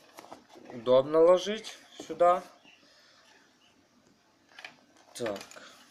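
Fabric rustles softly as hands handle a zippered pouch.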